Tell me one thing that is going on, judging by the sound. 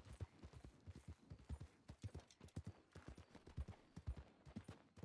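Horse hooves clop on the ground.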